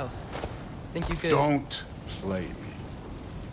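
A deep-voiced man speaks gruffly.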